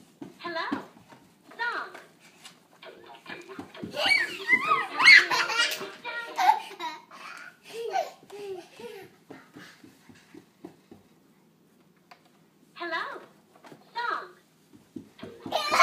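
A small child's feet patter quickly across a hard floor.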